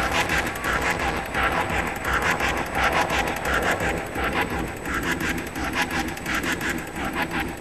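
Loud dance music with a fast pounding beat plays through a large hall.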